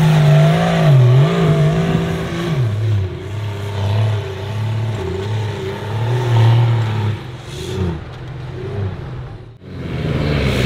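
A powerful engine revs hard and roars up and down.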